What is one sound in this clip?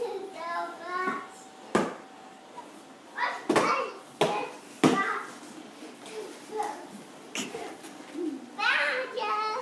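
A cardboard box thumps and scrapes as a toddler pushes it across carpet.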